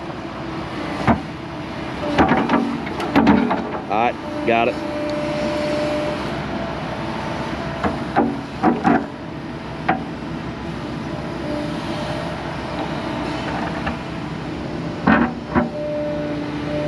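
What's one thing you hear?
Metal parts of an excavator clank and squeal as its arm moves.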